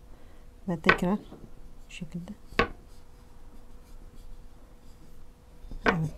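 A wooden rolling pin rolls and knocks softly on a hard counter.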